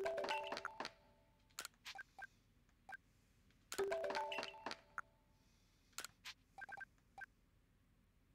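Short electronic menu chimes and clicks play in quick bursts.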